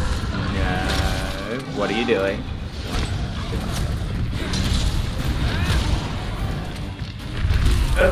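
A huge monster roars and growls.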